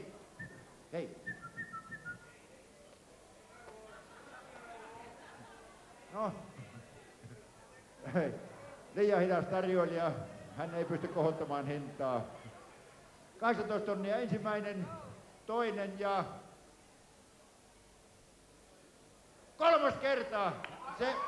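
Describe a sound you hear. An elderly man speaks with animation through a microphone over loudspeakers.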